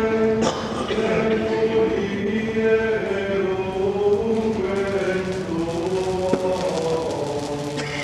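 A crowd of voices sings slowly in a large echoing hall.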